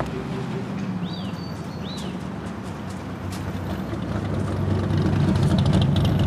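A car engine rumbles as a car rolls slowly closer.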